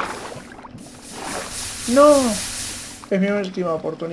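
Water gushes and splashes with a loud hiss.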